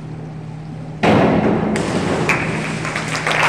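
A diver splashes into the water of an echoing pool.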